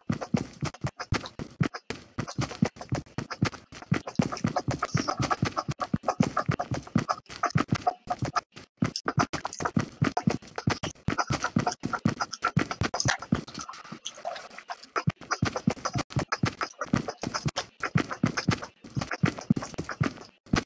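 Quick footsteps run over grass.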